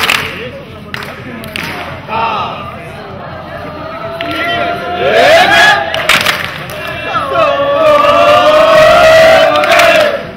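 Young men clap their hands sharply.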